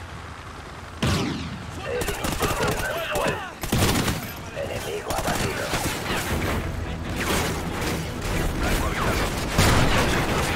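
Gunshots crack loudly in bursts nearby.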